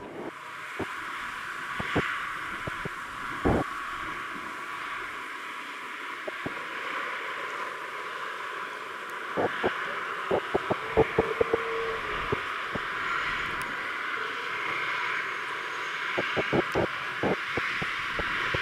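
A jet airliner's engines roar and whine steadily close by.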